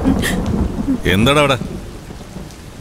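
A man speaks firmly, close by.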